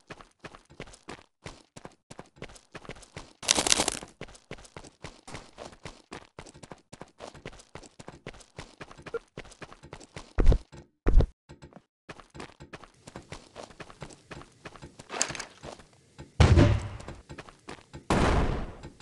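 Quick footsteps thud steadily on wooden planks.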